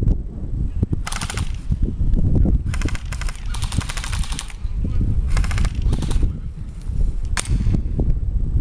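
A rifle fires rapid bursts of shots nearby.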